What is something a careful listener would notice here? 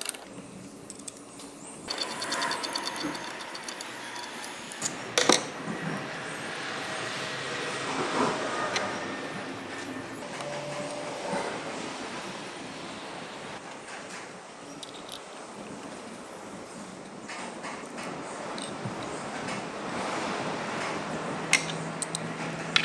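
Metal tools clink and scrape against an engine part.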